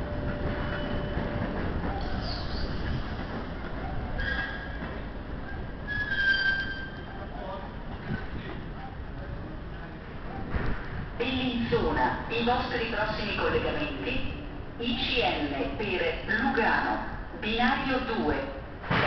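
A train locomotive hums and rumbles low and steadily nearby.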